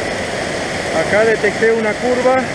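A middle-aged man speaks calmly and close up, over the rushing water.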